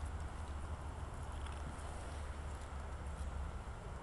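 A squirrel gnaws and crunches on a nut.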